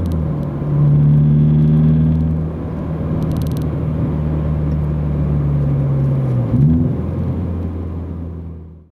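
A car engine hums steadily from inside the car as it drives along.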